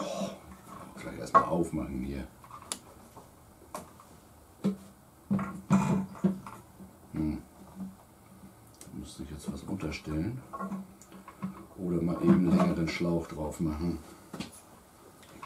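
An older man talks calmly nearby.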